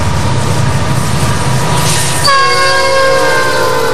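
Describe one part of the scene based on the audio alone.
Diesel freight locomotives rumble past at speed on steel rails.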